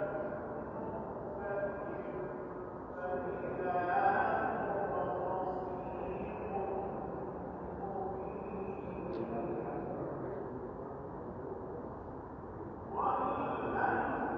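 Men talk quietly in the background.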